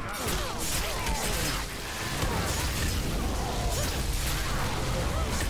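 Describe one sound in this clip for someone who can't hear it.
Heavy blows thud in a chaotic fight.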